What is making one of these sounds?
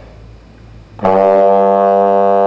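A brass horn plays a loud, steady low note.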